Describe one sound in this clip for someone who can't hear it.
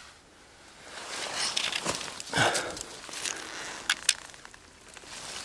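Dry leaves rustle and crackle close by.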